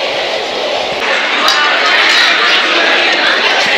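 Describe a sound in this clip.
A crowd of adults chatters all around.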